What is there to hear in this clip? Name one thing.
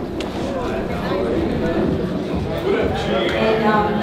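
Men and women chat nearby as they greet each other.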